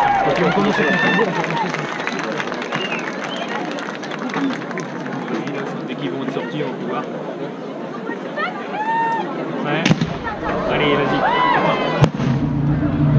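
A large outdoor crowd chatters and murmurs.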